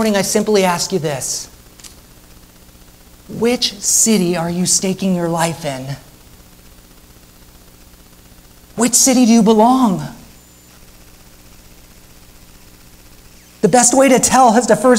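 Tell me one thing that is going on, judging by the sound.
A man speaks calmly into a microphone in bursts, with pauses between phrases.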